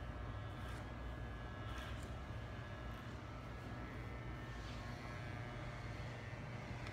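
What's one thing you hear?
A hair dryer blows steadily close by.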